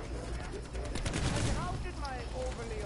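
An explosion bursts with a roar.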